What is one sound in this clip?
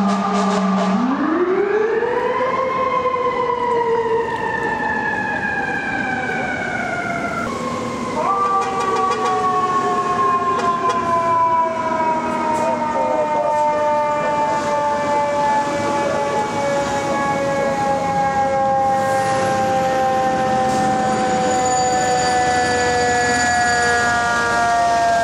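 A fire truck siren wails loudly, rising and then slowly falling.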